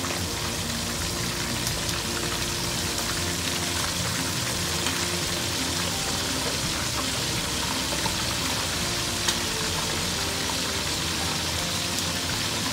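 Hot oil sizzles and crackles steadily in a frying pan.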